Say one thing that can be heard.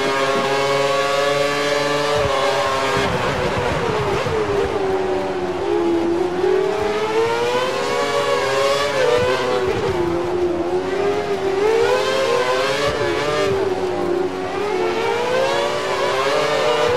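A racing car engine screams at high revs, rising and falling as it shifts gears.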